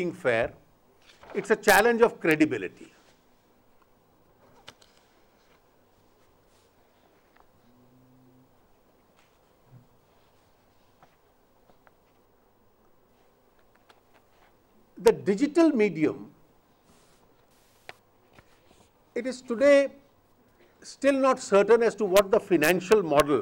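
A middle-aged man speaks into microphones in short bursts with long pauses.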